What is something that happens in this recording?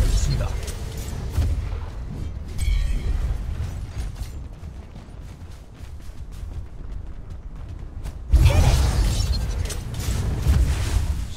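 Blows thud and clash in a fight.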